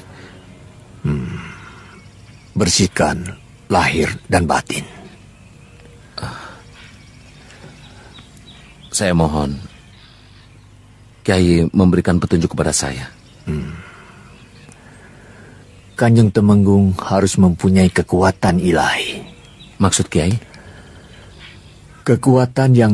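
An elderly man speaks calmly and firmly.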